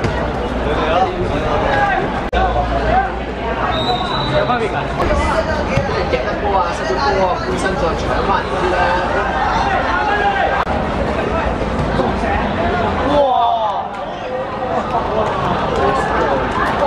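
Young men talk and shout together outdoors.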